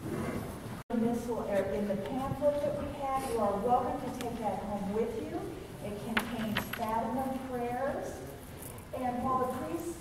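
A woman reads aloud steadily through a microphone.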